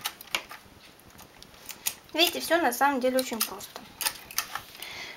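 Metal knitting machine needles click sharply.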